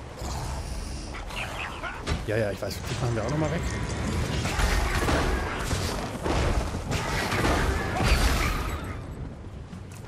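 Magic spells crackle and blast during a fight.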